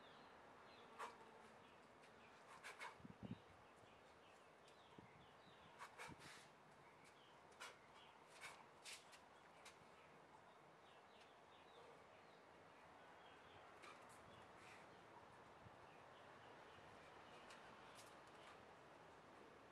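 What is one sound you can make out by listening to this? Gloved fists swish through the air in quick punches.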